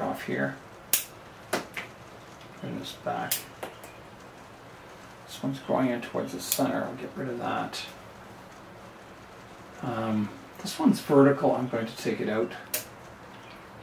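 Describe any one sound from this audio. Small shears snip thin twigs with sharp clicks.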